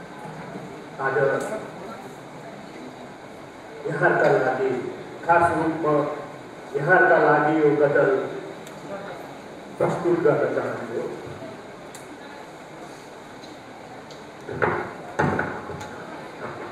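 A man recites slowly through a microphone, in short phrases with pauses.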